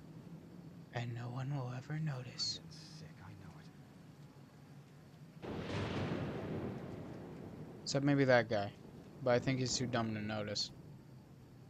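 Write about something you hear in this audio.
A young man talks casually into a nearby microphone.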